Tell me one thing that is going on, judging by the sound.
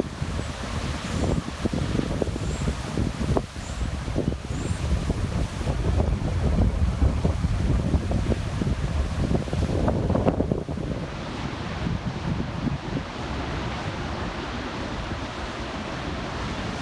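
Waves crash and churn against rocks below.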